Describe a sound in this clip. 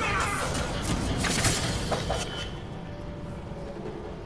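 Metal swords clash and ring sharply.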